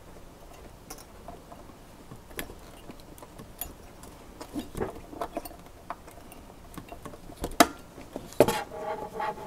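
A metal bracket clicks and taps against a circuit board.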